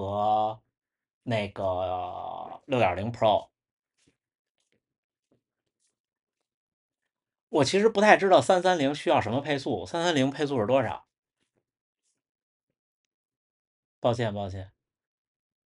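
A young man speaks close to a microphone in short bursts, with long pauses between.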